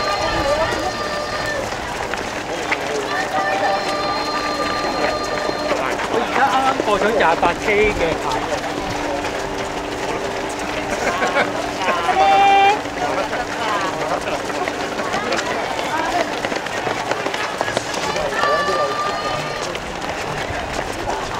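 Many running feet patter on the road.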